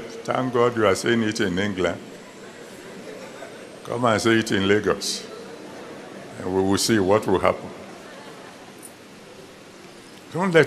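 An elderly man preaches forcefully in short bursts through a microphone, with pauses between phrases.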